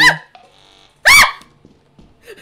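A young woman shrieks loudly.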